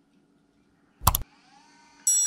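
A laptop gives a short beep.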